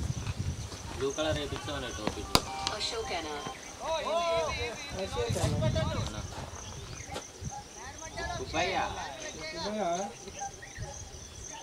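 Men call out across an open field.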